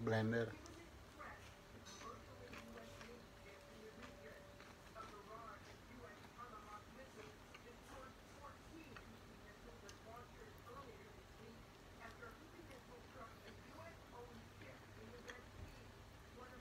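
A man chews and munches food.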